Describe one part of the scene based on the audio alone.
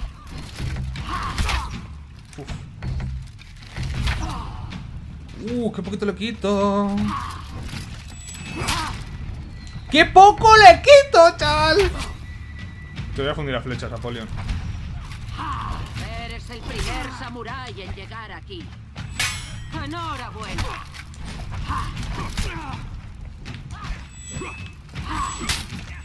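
Swords clash and clang in combat.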